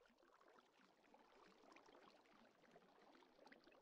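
Water trickles and splashes nearby.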